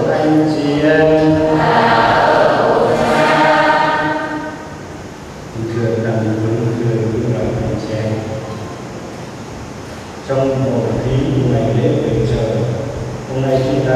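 An elderly man chants slowly through a microphone.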